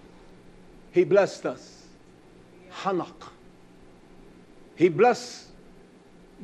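A man speaks with emphasis into a microphone, in short bursts separated by pauses.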